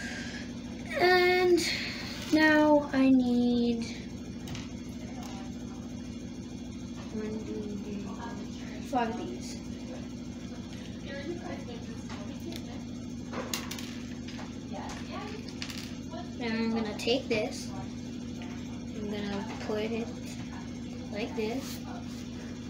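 A child speaks nearby.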